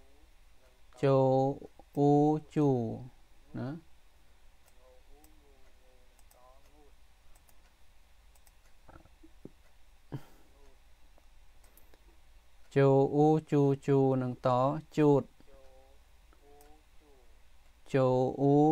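A middle-aged man speaks slowly and clearly into a microphone, pronouncing syllables one at a time.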